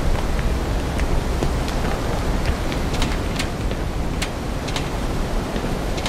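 Footsteps clank on a metal grating.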